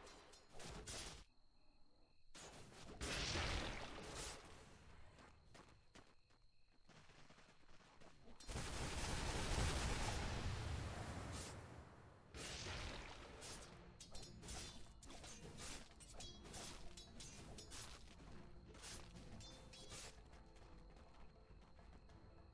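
Game combat effects clash and slash in quick bursts.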